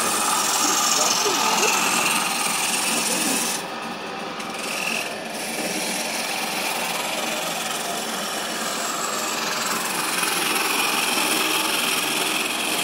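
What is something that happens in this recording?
A chisel scrapes and hisses against turning wood.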